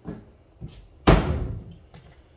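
A cabinet door bumps shut.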